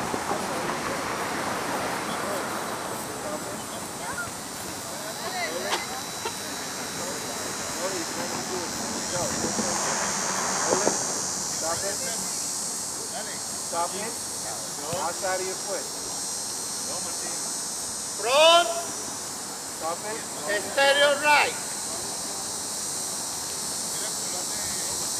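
Footballs thud as children kick them.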